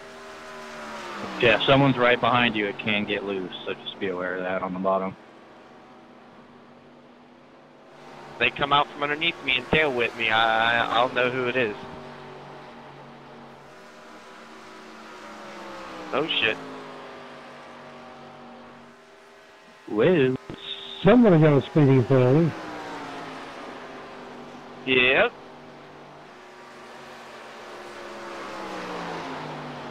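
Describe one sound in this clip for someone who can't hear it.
A racing car engine roars at high speed, rising and falling in pitch as it passes.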